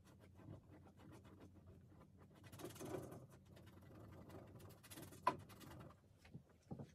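A paintbrush scrapes and swishes across canvas.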